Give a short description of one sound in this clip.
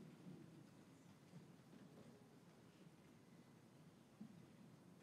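A choir of young voices sings together softly in a large echoing hall.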